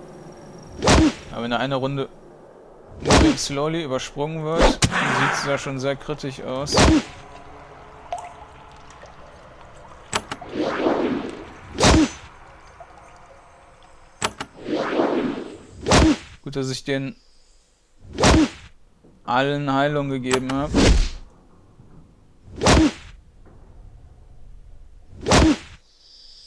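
Sharp blows strike again and again in a game fight.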